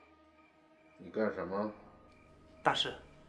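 An elderly man answers in a low, gruff voice, close by.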